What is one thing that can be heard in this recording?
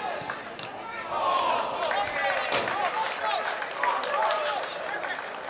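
A small crowd cheers and claps outdoors.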